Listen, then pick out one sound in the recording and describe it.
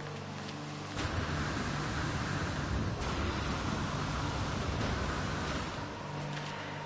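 A jetpack roars with a rushing whoosh.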